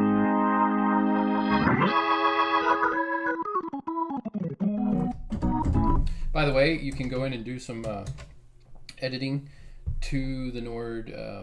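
An electric organ plays sustained chords with a swirling, warbling tone.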